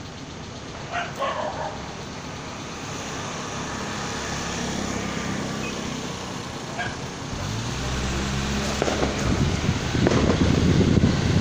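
A motor scooter passes by.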